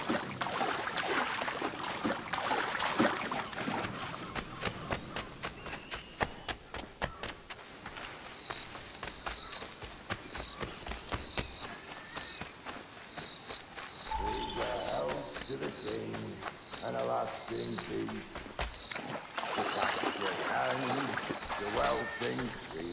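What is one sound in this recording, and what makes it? Feet splash through shallow water.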